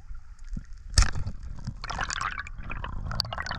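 Air bubbles gurgle and burst underwater.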